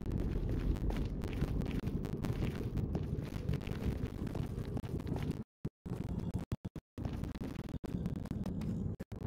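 Footsteps crunch steadily on stone.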